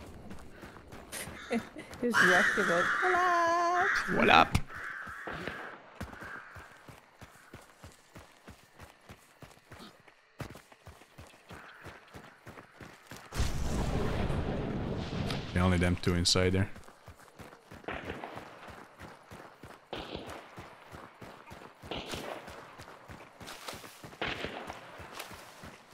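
Footsteps rustle steadily through tall grass.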